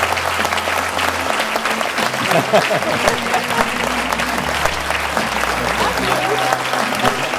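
A large crowd applauds loudly and steadily.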